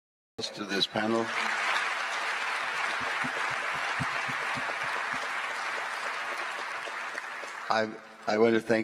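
A large crowd applauds in a big hall.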